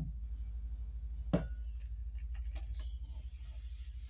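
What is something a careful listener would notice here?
Thick liquid pours into a glass bowl.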